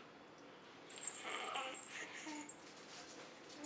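A baby giggles and squeals happily close by.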